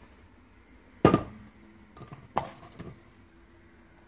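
A metal bowl clanks and scrapes as pieces are dropped in.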